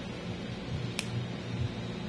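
Nail clippers snip sharply.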